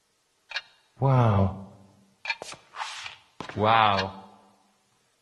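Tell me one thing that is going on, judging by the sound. A man speaks loudly and dramatically in an echoing room.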